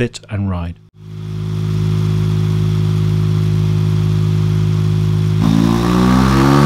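A motorcycle engine idles loudly and steadily through an exhaust.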